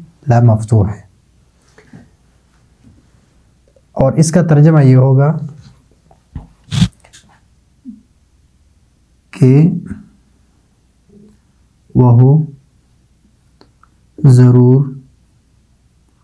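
A man speaks slowly and clearly, close by, as if teaching.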